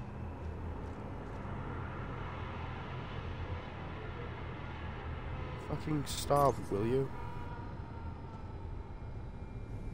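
A zipline cable hums and whirs as a rider slides along it.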